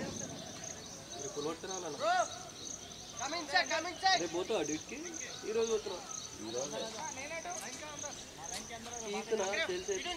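Players call out to each other across an open field.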